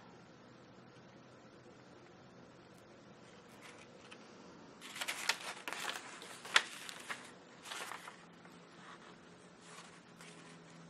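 Thread is pulled through paper with a soft scratching.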